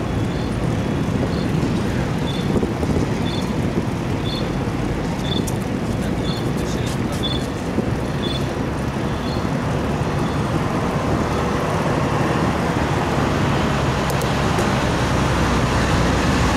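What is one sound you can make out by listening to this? Wind rushes and buffets steadily past a moving bicycle.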